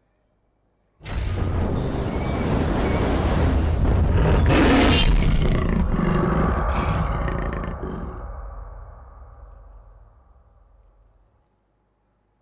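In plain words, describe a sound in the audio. Dramatic music and booming effects play loudly through loudspeakers, then fade away.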